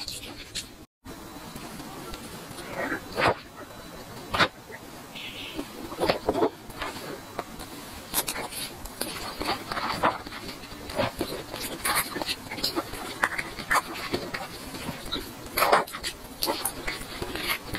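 A young woman chews and smacks her lips wetly, close to the microphone.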